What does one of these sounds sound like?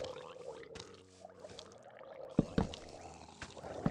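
Torches are set down with short soft thuds.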